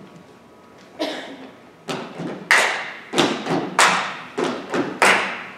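Young girls shout loudly on a stage in an echoing hall.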